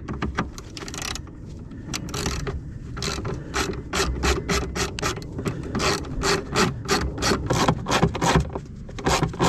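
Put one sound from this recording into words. A ratchet wrench clicks quickly and evenly.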